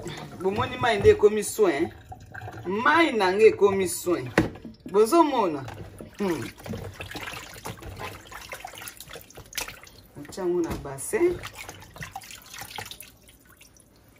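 Hands splash and rub things in water.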